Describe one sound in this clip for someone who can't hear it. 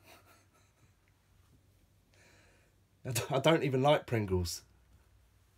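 A man laughs.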